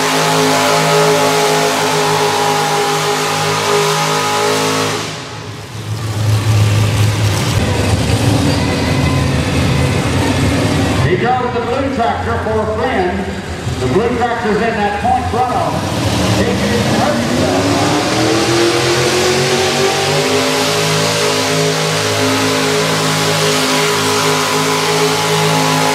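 A tractor engine roars loudly and revs up, rising in pitch.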